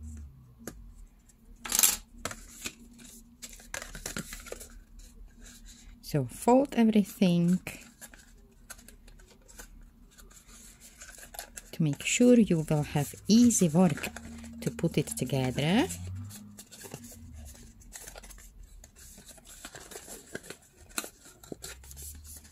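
Card stock rustles and creases as it is folded by hand.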